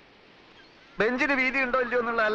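A second man answers in an emotional, pleading voice, close by.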